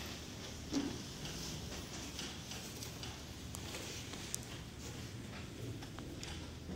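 A microphone thumps and rustles as it is handled on its stand.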